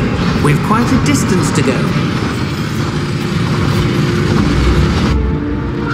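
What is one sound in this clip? A mine cart rumbles and clatters along rails.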